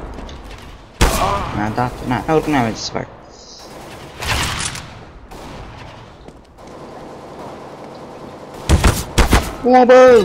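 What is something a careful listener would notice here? Loud rifle shots crack, with a short echo.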